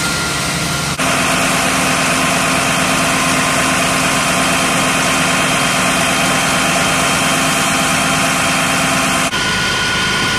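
A fire engine's motor hums steadily close by.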